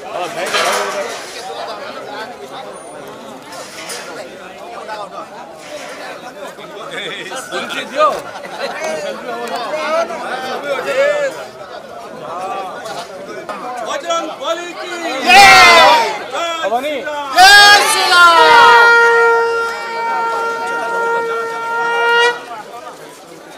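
A crowd of men chatters and calls out loudly outdoors.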